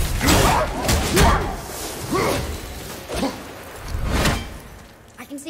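Heavy axe blows thud and crunch against a beast.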